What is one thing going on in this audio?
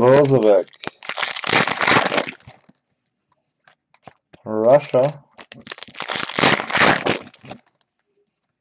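A foil wrapper crinkles and rustles as it is torn open by hand.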